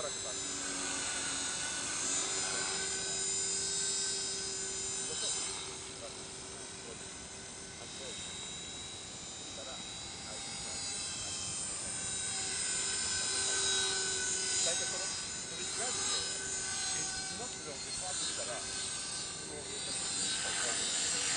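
A model helicopter's engine whines steadily overhead, rising and falling in pitch as it flies about.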